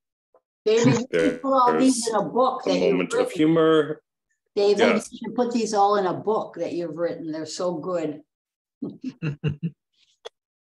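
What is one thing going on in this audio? An elderly woman talks calmly over an online call.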